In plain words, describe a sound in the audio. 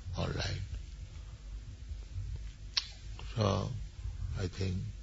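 An elderly man speaks slowly and calmly, close by, with long pauses.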